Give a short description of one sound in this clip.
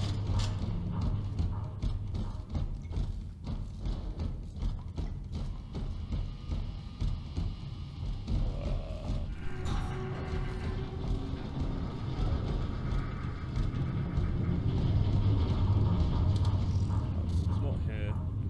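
Heavy armoured footsteps thud on stone.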